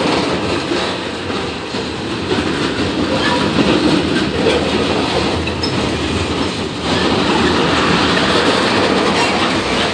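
A freight train rolls past close by, its wheels rumbling and clattering on the rails.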